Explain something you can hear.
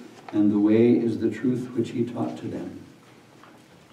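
A middle-aged man reads aloud calmly and clearly, close by.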